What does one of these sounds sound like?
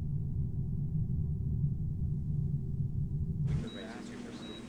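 A deep, steady engine rumble drones and then cuts off.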